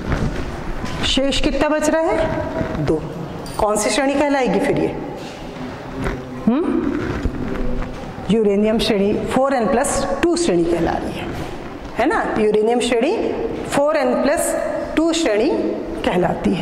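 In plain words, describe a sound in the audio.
A woman explains clearly and calmly, as if teaching.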